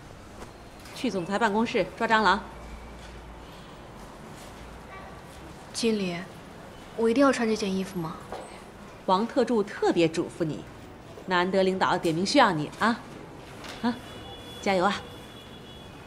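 A middle-aged woman speaks firmly, nearby.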